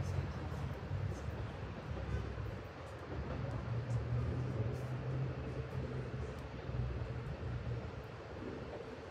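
A train rumbles low and steady as it approaches along the tracks.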